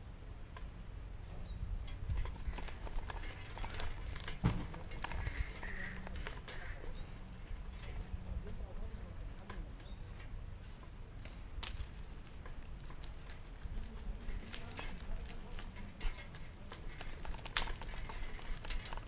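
Bicycle tyres roll and rattle over rough, cracked pavement.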